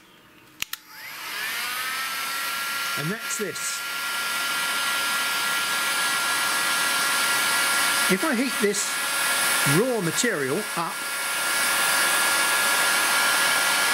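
A heat gun blows with a steady, loud whirring hiss.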